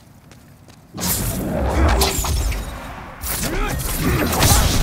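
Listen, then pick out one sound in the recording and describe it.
A sword swishes through the air and clangs on impact.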